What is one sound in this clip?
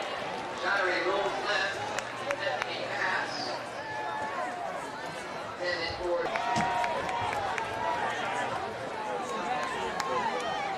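A crowd cheers and chatters in an outdoor stadium.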